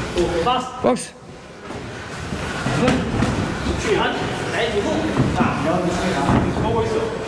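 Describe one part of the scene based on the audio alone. A man talks and calls out nearby.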